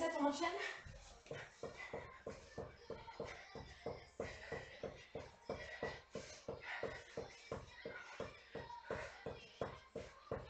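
Feet tap quickly and steadily on a hard floor.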